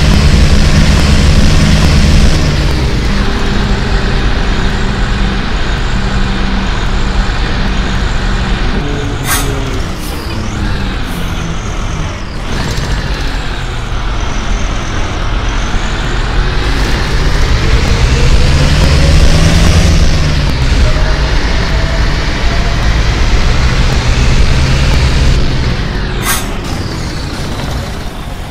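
A bus engine hums and rises and falls in pitch as the bus speeds up and slows down.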